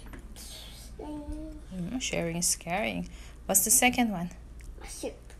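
A young girl talks playfully close by.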